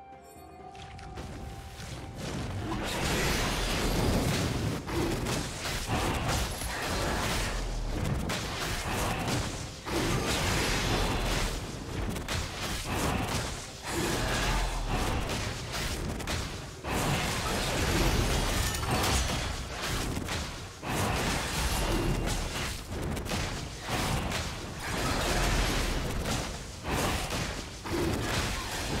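Spell blasts and weapon strikes clash in a fast game battle.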